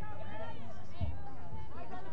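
Lacrosse sticks clack together at a face-off.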